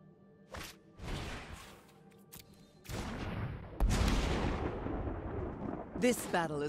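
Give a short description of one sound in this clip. A magical whoosh sweeps through as a spell is cast.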